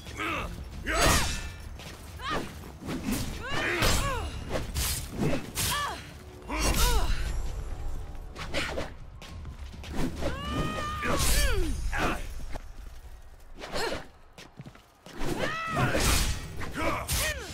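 Heavy blows thud against a wooden shield.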